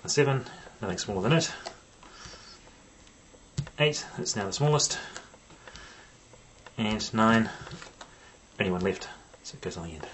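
Playing cards are laid down softly one by one on a cloth.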